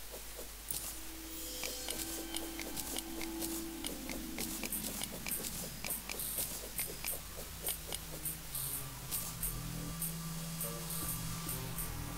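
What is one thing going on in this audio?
A pickaxe chips at rock in quick, repeated knocks.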